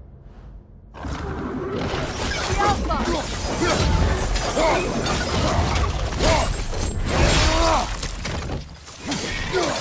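Heavy blows land with loud thuds and clangs in a fierce fight.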